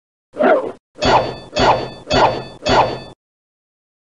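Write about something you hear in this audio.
A cartoon spring boings several times in quick succession.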